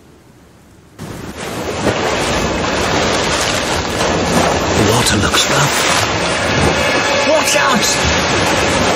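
Rough water rushes and splashes loudly.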